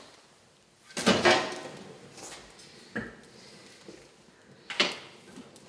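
A metal poker scrapes and knocks against logs in a fireplace.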